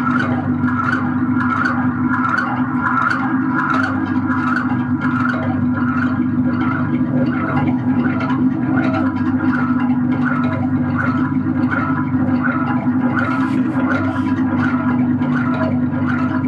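Electronic music with a steady drone and a rhythmic pulse plays loudly.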